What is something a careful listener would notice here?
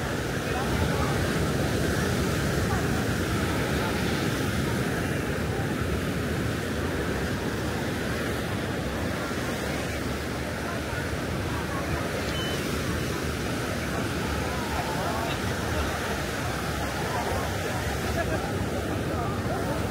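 A crowd chatters in a low murmur across the beach.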